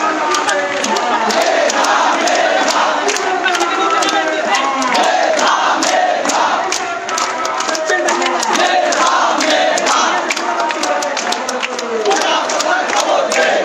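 A large crowd of young men chants and shouts loudly outdoors.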